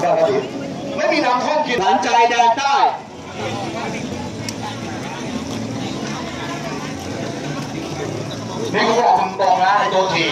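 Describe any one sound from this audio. Young men talk loudly close by.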